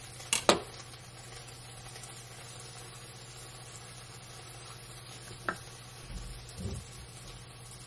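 A knife taps and scrapes against a plastic bowl.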